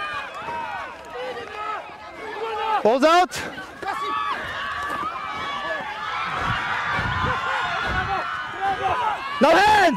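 Rugby players shout to each other on an open field.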